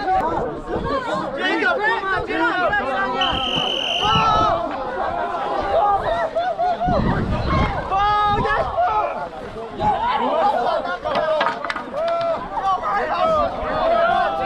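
A crowd of young women shouts and cheers loudly outdoors.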